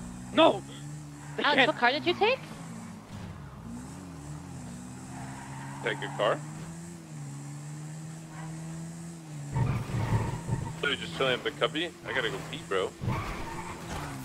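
A quad bike engine hums steadily, rising and falling as it drives.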